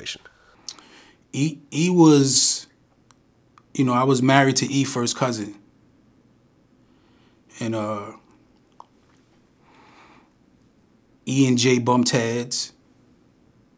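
A man speaks calmly and close to a microphone, in bursts with pauses.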